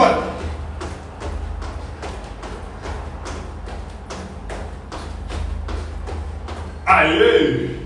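Feet thump on a hard floor in a quick, steady rhythm.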